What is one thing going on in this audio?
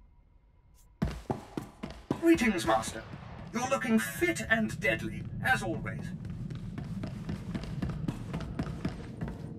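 Footsteps patter quickly on a metal floor.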